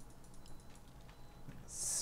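An axe chops into a tree trunk.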